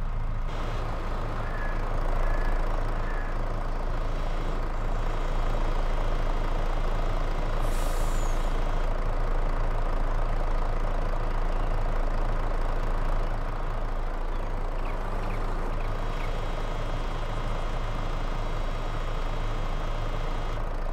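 A diesel engine idles with a steady low rumble.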